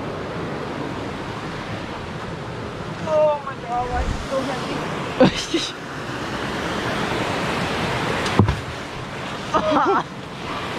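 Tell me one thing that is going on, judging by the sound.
A stream of water rushes and splashes over rocks close by.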